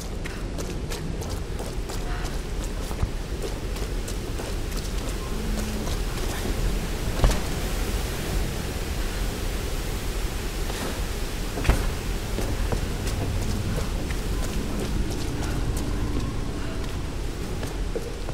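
Footsteps crunch on stone and gravel.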